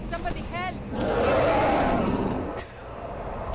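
A dragon roars in the distance.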